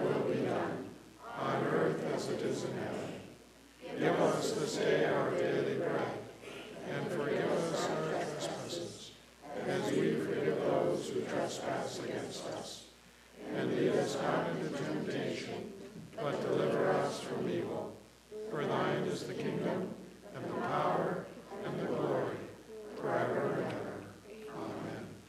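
An elderly man speaks calmly and steadily through a microphone in a room with some echo.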